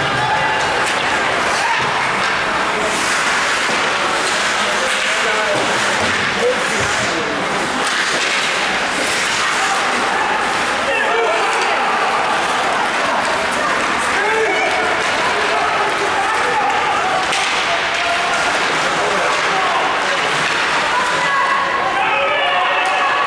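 A crowd of spectators shouts and cheers in a large echoing rink.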